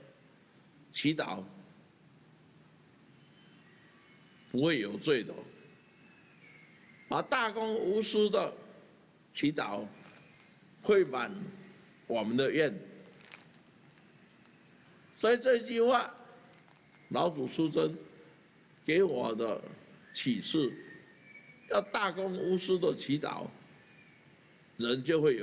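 An elderly man speaks slowly and firmly in short phrases into a microphone, with pauses between them.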